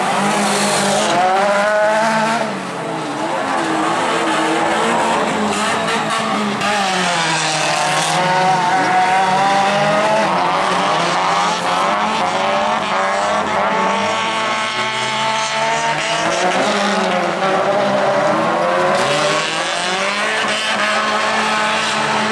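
Rally car engines roar and rev hard nearby.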